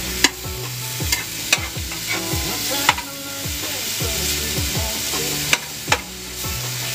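A metal utensil clinks against a pan.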